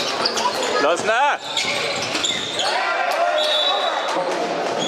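Sneakers squeak sharply on a hall floor.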